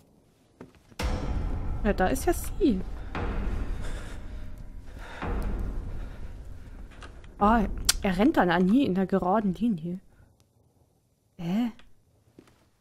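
A young woman talks with animation into a headset microphone.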